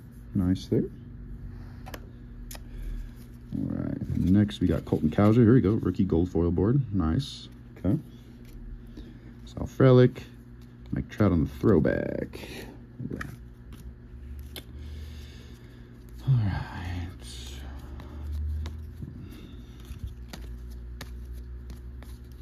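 Trading cards rustle and flick as hands sort through a stack.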